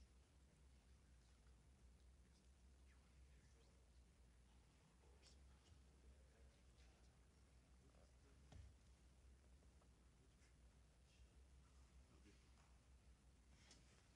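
Papers rustle and flip.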